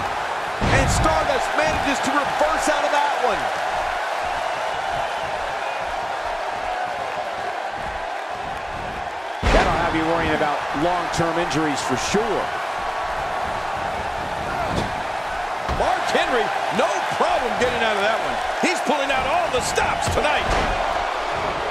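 Bodies slam heavily onto a wrestling ring with loud thuds.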